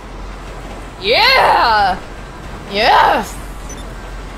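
A young woman squeals and laughs loudly into a close microphone.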